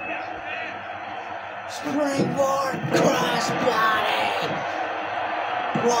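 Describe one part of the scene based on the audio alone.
A crowd cheers and roars through a loudspeaker.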